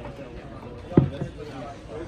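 A playing card slaps down onto a table.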